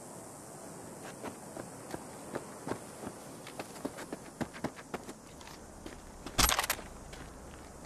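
Footsteps crunch on dry, sandy ground.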